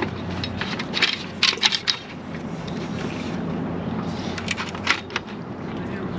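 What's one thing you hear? Water splashes and sloshes around a man wading.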